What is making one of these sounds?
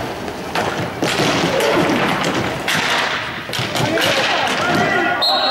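Young men shout to each other in an echoing hall.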